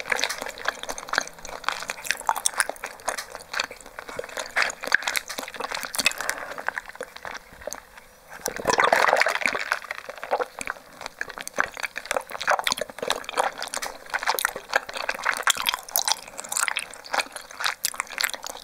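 A straw squeaks and rubs as it is pushed through a plastic lid, close to a microphone.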